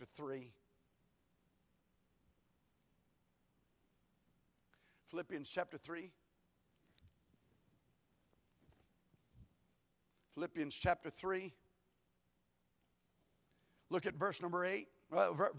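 A man speaks calmly in short phrases, heard through a microphone in a large echoing hall.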